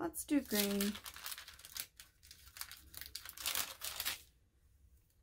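A plastic sheet crinkles as it is handled.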